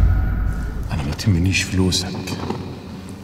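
An older man speaks in a low, rough voice up close.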